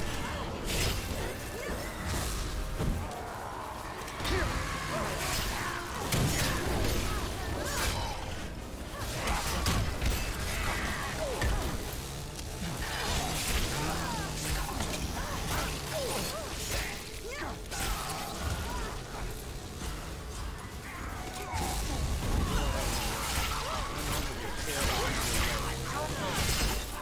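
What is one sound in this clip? Shotgun blasts go off in loud bursts.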